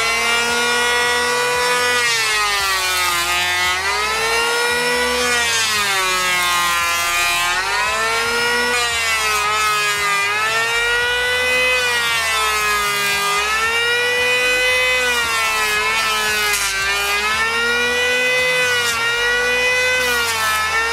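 An electric hand planer whines loudly, its pitch dipping each time it bites into the wood.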